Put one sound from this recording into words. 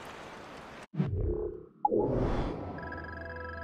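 A soft whoosh swells and fades.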